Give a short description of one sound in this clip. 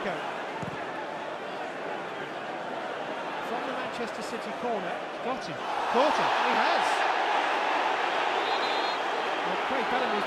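A large stadium crowd roars and chants loudly.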